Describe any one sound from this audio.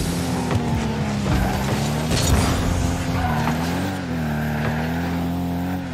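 A rocket boost roars.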